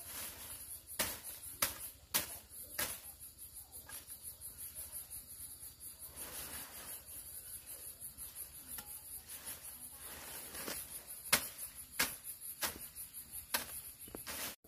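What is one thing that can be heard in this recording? A hoe thuds into dry soil again and again.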